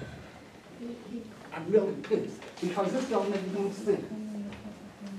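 An elderly woman speaks calmly nearby.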